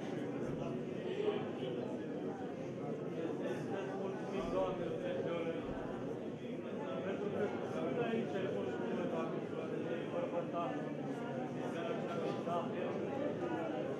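A crowd of men and women talk and murmur all at once in a large echoing hall.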